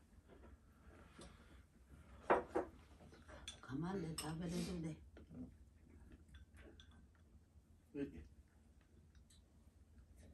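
Chopsticks and bowls clink softly.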